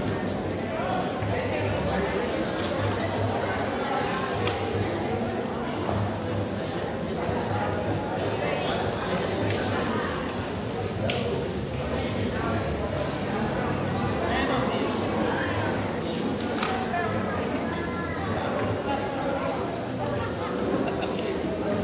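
Men talk in a large, echoing hall.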